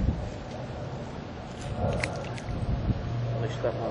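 Something small splashes into still water close by.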